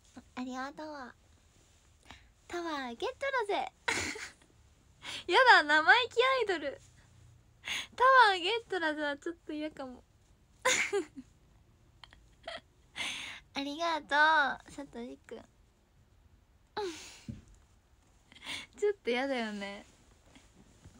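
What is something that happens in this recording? A young woman speaks brightly and playfully, close to a microphone.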